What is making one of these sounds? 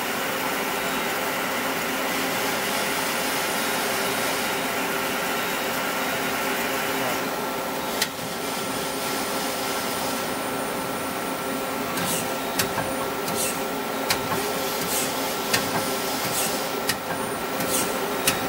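A machine hums steadily with a whirring drone.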